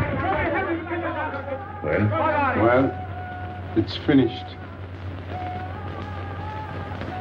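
A man speaks tensely and close by.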